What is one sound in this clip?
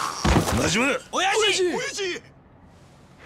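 A man calls out sharply.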